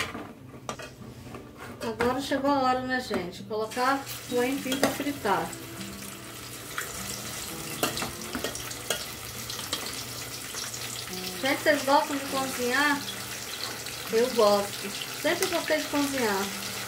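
Hot oil sizzles and bubbles in a pot.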